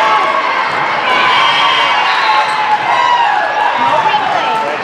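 Young women cheer and shout together.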